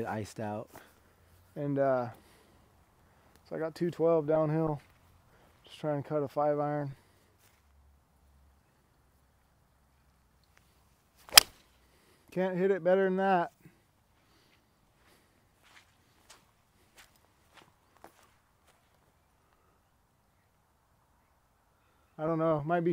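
A man talks calmly nearby in short bursts.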